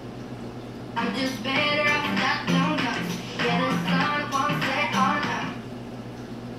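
Music with a woman singing plays from a television.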